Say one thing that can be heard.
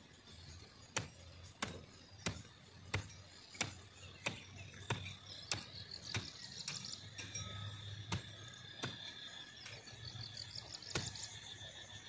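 A hoe chops into dry soil with steady, regular strokes.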